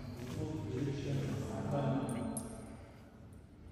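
A small group of people murmur prayers in an echoing hall.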